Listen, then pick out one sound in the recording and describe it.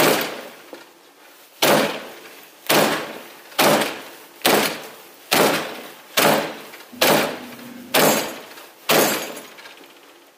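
Heavy blows pound against a door in a steady rhythm.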